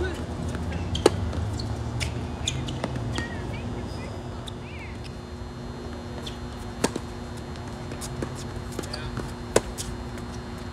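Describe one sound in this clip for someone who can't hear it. Tennis rackets strike a ball with sharp pops, back and forth outdoors.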